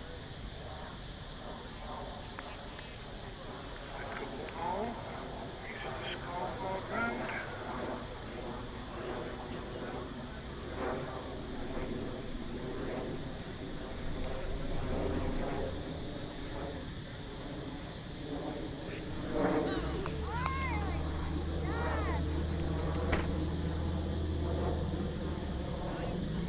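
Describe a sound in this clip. Men's voices call out from a distance across an open field.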